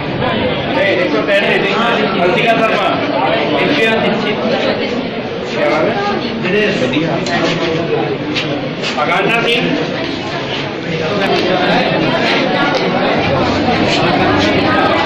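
A large crowd of men and women chatters loudly all around, close by.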